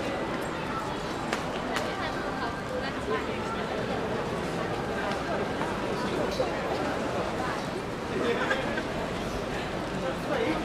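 A crowd of people chatter nearby in a busy street.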